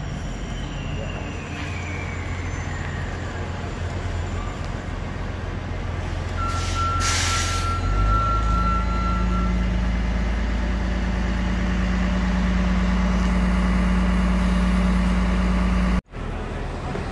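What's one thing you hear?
A bus engine idles with a loud, deep rumble close by.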